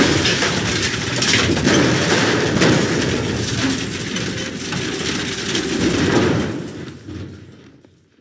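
A loud rush of debris bursts and clatters.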